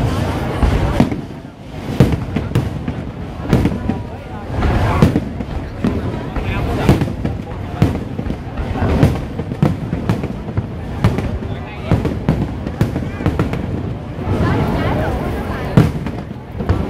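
Fireworks boom and crackle loudly overhead, outdoors.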